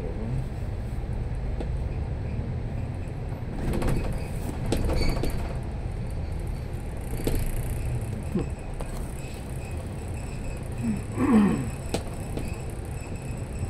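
Traffic hums steadily on the road nearby.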